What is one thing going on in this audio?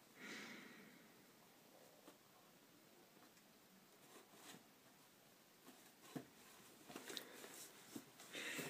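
A cat rustles and crinkles tissue paper in a box.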